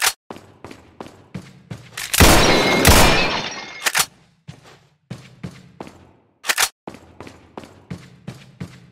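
Footsteps thud steadily.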